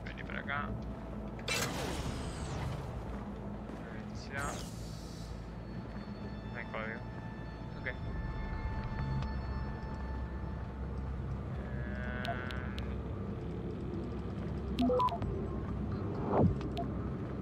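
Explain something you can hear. Electronic beeps and whooshing blips sound from a computer game.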